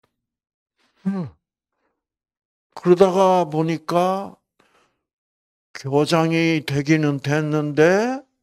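An elderly man preaches with animation through a microphone, with long pauses.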